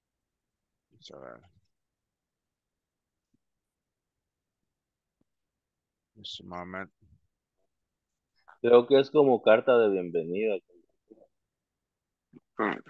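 A man speaks calmly through an online call, in short bursts.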